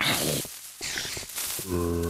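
A fireball whooshes as it is launched.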